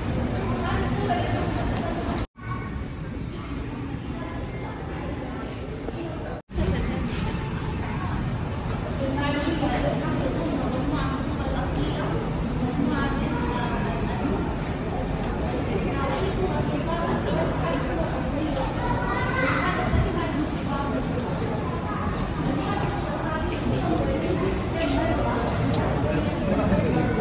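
A crowd of visitors murmurs and chatters in a large echoing hall.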